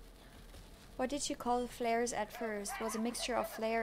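A woman speaks close into a microphone with animation.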